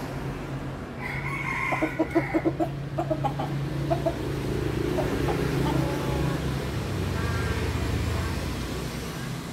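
A rooster crows loudly and close by.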